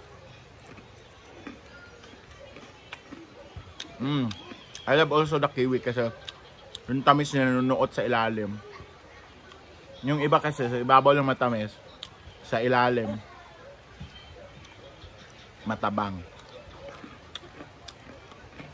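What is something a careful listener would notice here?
A young man chews crunchy food.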